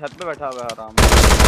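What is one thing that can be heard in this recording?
A rifle fires a burst.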